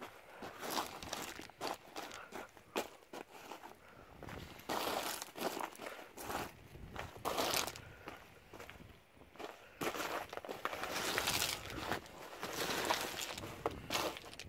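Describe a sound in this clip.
A pole's metal foot scrapes and clacks against gravel.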